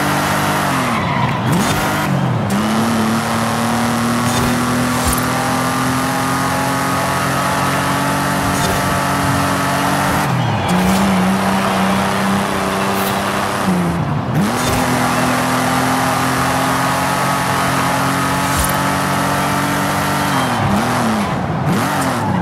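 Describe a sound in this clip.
A car engine roars loudly, revving up and dropping as gears shift.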